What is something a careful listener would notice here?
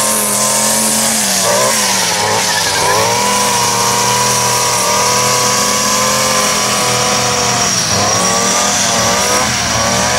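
A string trimmer line whips through grass.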